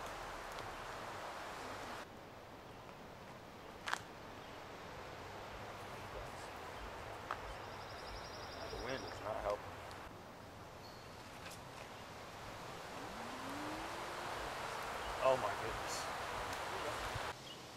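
Leaves rustle softly in a light breeze.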